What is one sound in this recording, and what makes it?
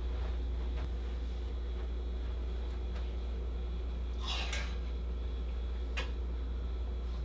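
Clothing rustles as a jacket is handled and hung.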